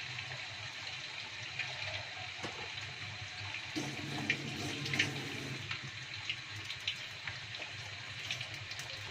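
Food sizzles and crackles in hot oil.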